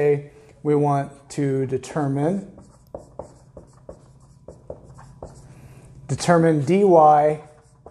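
A marker squeaks as it writes on a whiteboard.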